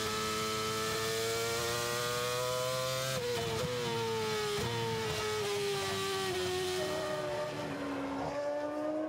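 A racing car engine screams at high revs, dropping in pitch as it shifts down through the gears.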